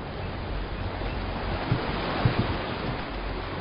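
Waves splash against rocks.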